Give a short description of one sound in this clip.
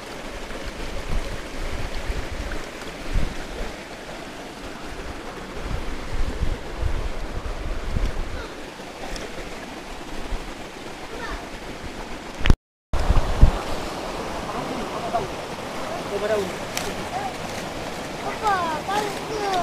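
Footsteps splash and scrape on wet stones.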